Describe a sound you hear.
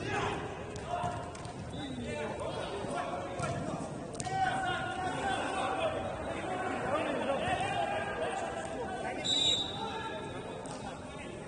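Men shout to each other in a large echoing hall.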